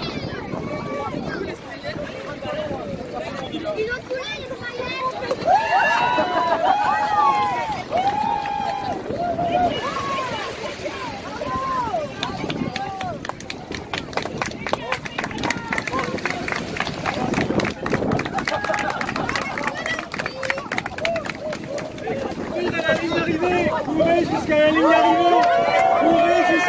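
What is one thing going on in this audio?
A crowd of adults and children chatter and call out nearby, outdoors.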